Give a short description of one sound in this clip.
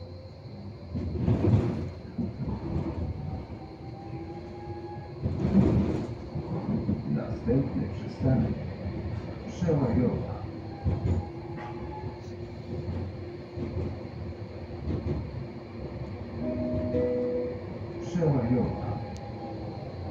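Tram wheels clatter and squeal over the track.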